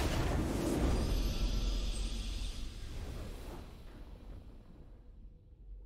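A triumphant game victory fanfare rings out and slowly fades away.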